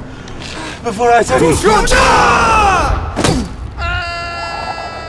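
A man screams as he falls.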